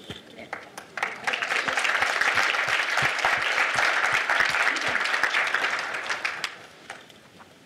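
A large audience applauds in a big room.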